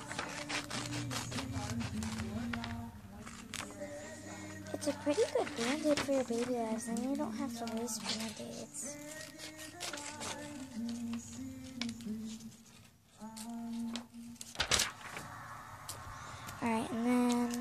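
Paper rustles and crinkles.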